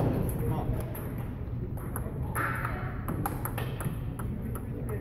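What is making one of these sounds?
Table tennis balls click sharply against paddles and tables in a large echoing hall.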